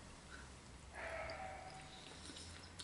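A man slurps noodles.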